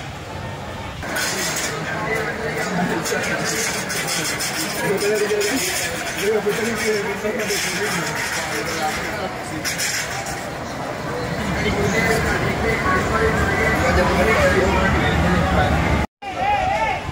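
A crowd murmurs and chatters in a busy open plaza.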